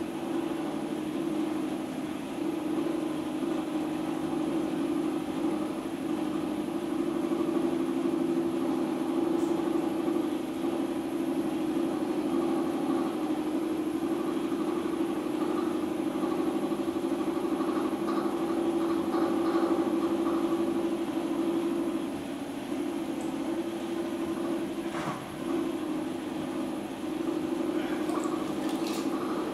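Wet clay squelches and rubs under a potter's hands.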